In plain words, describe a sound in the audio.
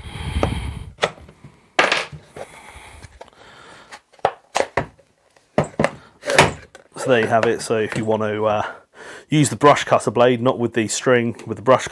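Hard plastic parts click and clack as they are handled and fitted together.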